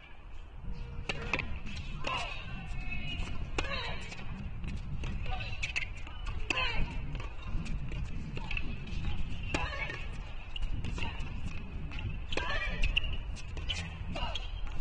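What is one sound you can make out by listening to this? Tennis rackets strike a ball back and forth in a rally.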